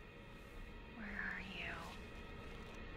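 A young woman calls out quietly and nervously.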